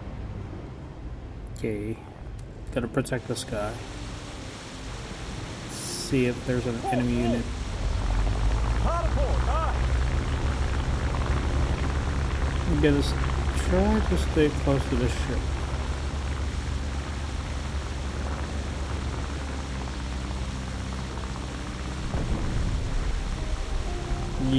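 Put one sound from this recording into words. Water churns and splashes around a surfacing submarine.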